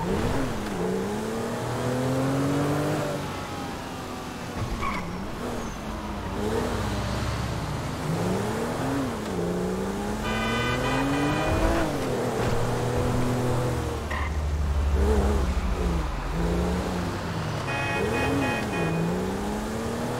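A car engine revs up and down as it shifts through gears.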